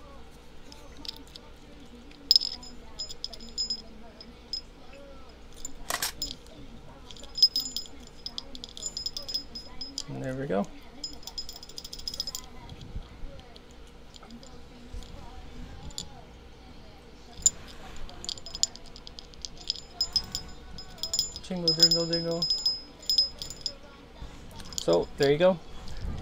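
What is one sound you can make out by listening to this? Small metal parts click and jingle between fingers, close up.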